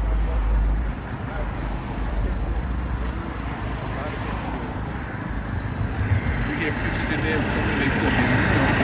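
Cars pass on a street outdoors.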